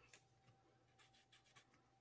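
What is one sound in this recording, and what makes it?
A marker squeaks softly on paper.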